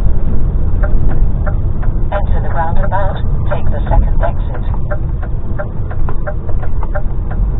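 A vehicle's engine rumbles low and steady while driving.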